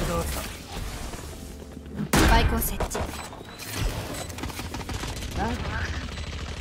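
A young man talks into a microphone in short bursts.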